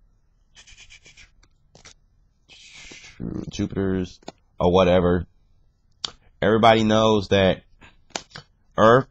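Playing cards rustle and slide against each other.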